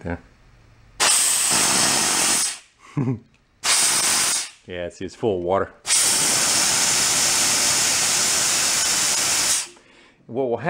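A pressure washer nozzle sprays a loud hissing jet of water in short bursts.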